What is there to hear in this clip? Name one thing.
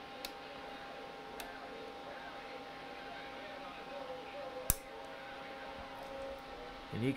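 An electronic instrument hums with a faint, steady whine.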